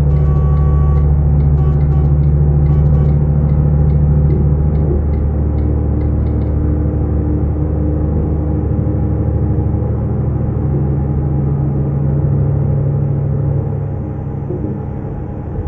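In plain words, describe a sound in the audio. A diesel semi-truck engine drones from inside the cab while cruising.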